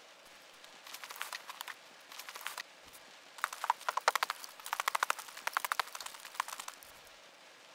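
Gear rustles and clicks in quick bursts.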